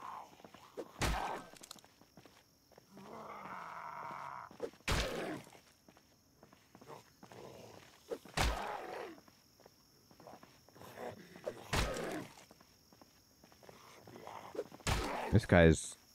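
A blunt weapon strikes a body with heavy thuds, every few seconds.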